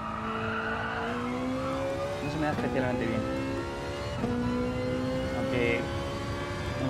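A racing car engine roars, its pitch climbing and then dropping at each gear change.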